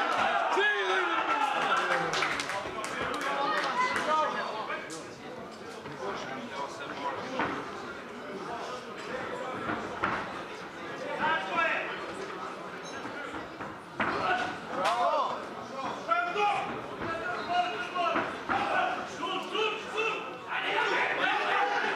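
A crowd of men and women shouts and cheers.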